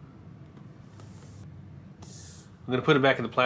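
A cardboard box slides and rustles on a table.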